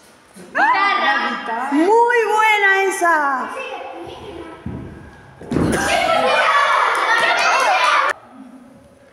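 Children shout and cheer loudly in an echoing hall.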